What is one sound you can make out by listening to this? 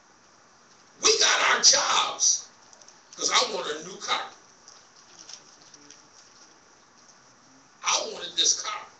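A man preaches loudly into a microphone over loudspeakers, in bursts with pauses, in an echoing hall.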